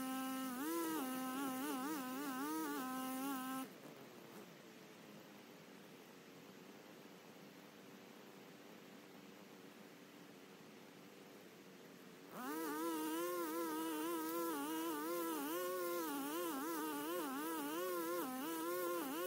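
A string trimmer whines in the distance, its engine rising and falling as it cuts grass.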